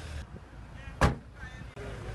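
A car boot lid slams shut.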